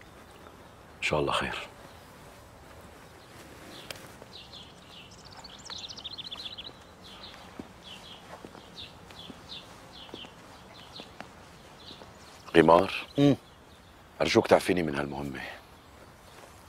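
Another man answers in a low voice.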